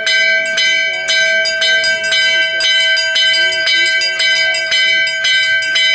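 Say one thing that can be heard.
A small hand bell rings rapidly and steadily.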